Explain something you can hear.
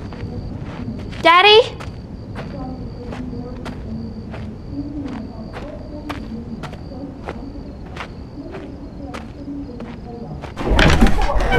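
Footsteps walk slowly and evenly across a floor.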